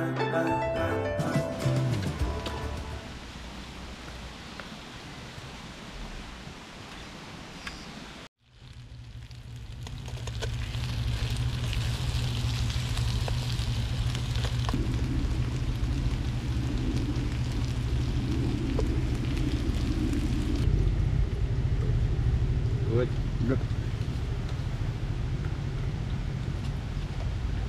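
A spoon scrapes and stirs food in a metal pot.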